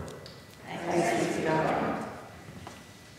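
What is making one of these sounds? A young man speaks calmly into a microphone in an echoing hall.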